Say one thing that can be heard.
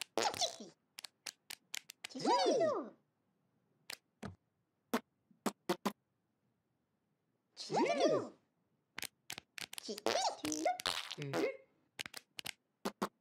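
Short pops and taps sound in quick bursts.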